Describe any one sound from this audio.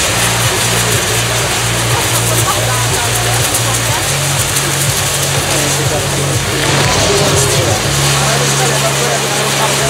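Fireworks crackle and fizz loudly.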